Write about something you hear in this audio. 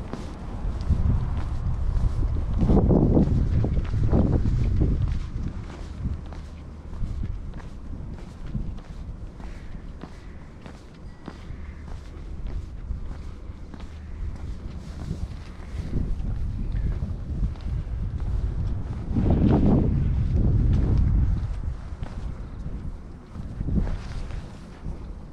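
Wind gusts into the microphone outdoors.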